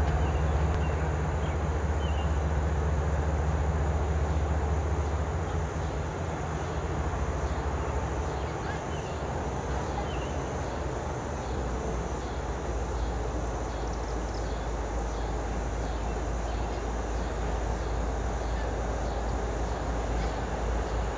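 A diesel-electric freight locomotive idles.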